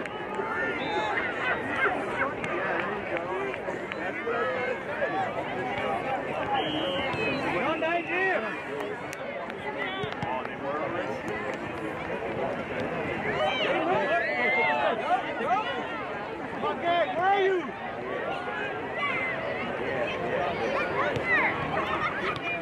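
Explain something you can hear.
Young players shout and call to one another outdoors.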